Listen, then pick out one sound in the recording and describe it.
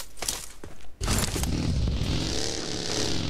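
A buggy engine starts and revs.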